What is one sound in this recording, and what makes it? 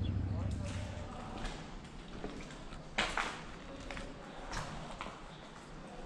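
Boots crunch over debris on a hard floor.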